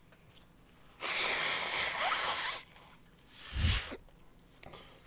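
A man blows his nose loudly into a tissue, close to a microphone.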